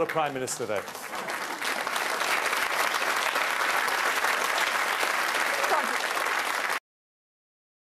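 A large audience applauds and cheers.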